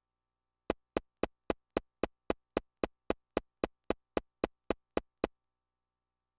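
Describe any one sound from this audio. Short electronic blips tick in a fast, steady rhythm from a video game.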